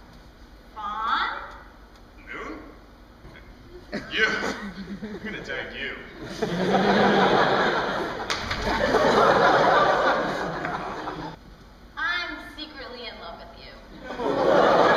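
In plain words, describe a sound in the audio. Young actors speak loudly on a stage in an echoing hall.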